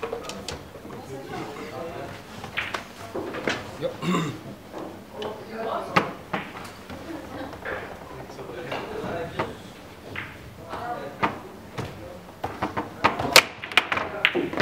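A foosball ball cracks sharply against the rods and walls of the table.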